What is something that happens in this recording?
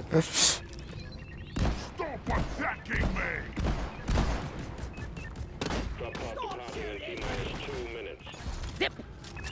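A blaster gun fires in rapid bursts.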